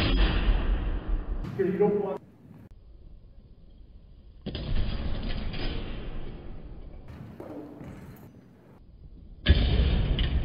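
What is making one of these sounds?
Steel longswords clash together in a large echoing hall.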